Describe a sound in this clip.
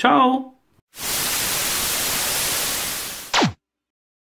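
Loud television static hisses steadily.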